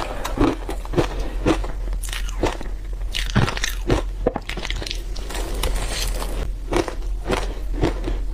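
A young woman chews and crunches food loudly and close up.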